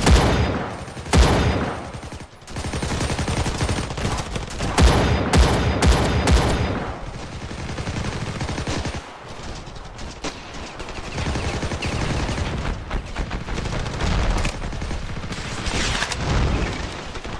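Rifle shots crack and boom across open ground.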